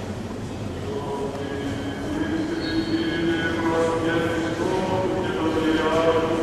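A choir of men chants together in a large echoing church.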